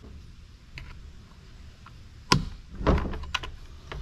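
Plastic parts click and snap into place.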